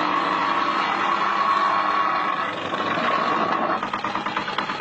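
A small petrol engine runs steadily nearby.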